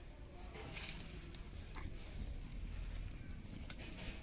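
Dry twigs and leaves rustle and crackle as they are handled.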